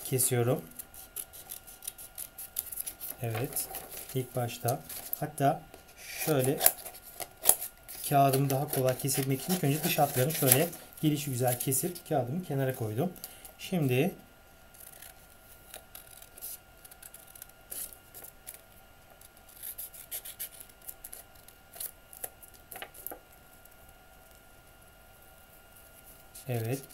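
Paper rustles and crinkles as it is handled.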